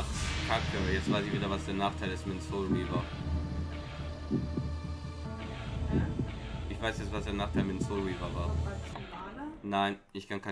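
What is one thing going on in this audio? Slow, gloomy music plays and then stops.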